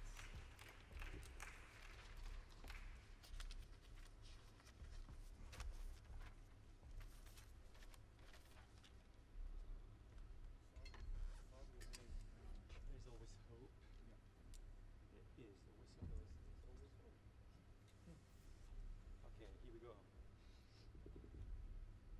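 A piano plays jazz.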